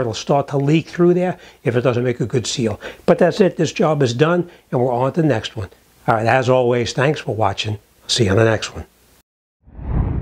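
An older man talks calmly and close, through a clip-on microphone.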